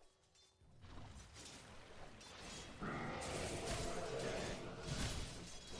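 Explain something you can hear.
Video game battle effects clash, zap and crackle.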